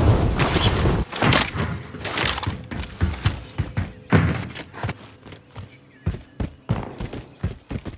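Footsteps thud on a metal roof.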